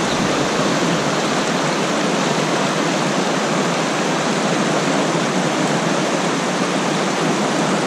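A fast river rushes and splashes over rocks, close by.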